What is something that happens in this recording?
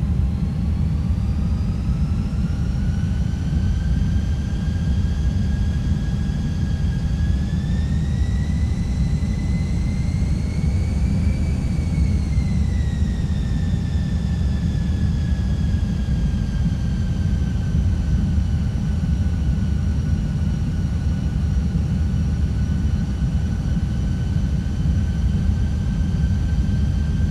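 Air rumbles low and steadily around the cockpit.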